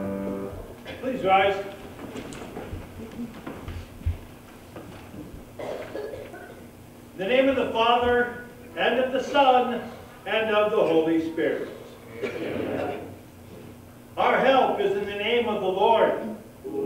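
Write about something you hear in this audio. An elderly man speaks calmly, reading out aloud.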